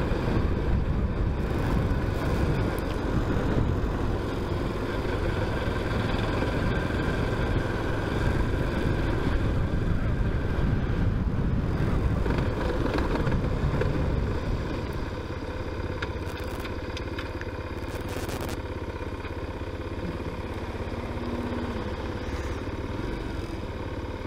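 Wind rushes over the rider, louder at speed and easing as the motorcycle slows behind a car.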